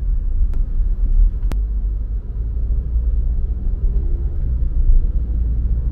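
A car engine rumbles low and steady from inside the car as it drives.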